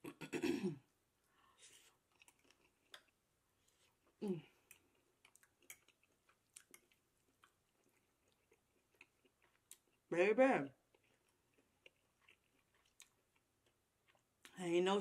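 A young woman chews food with soft, wet mouth sounds.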